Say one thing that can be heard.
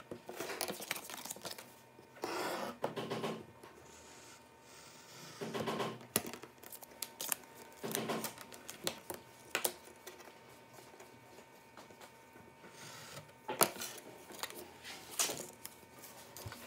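Paper rustles as it is folded and handled.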